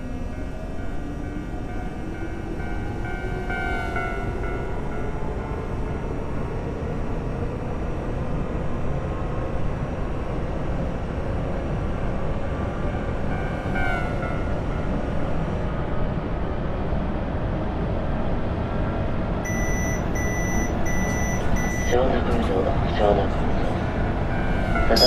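An electric train motor whines, slowly rising in pitch.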